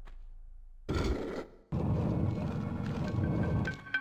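A heavy stone door grinds and rumbles open.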